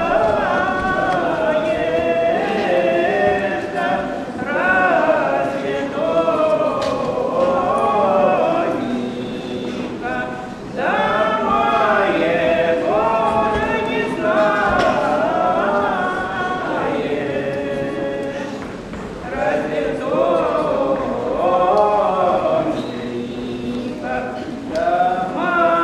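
A woman sings with a clear voice in an echoing hall.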